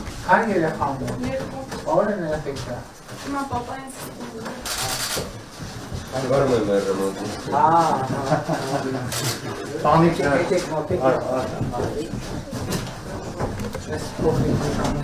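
Several men talk at close range.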